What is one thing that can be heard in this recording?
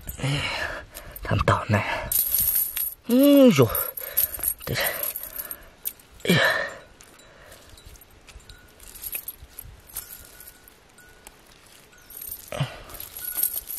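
Metal chain links of a cast net clink.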